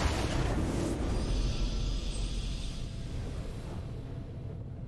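A bright magical chime swells up and fades.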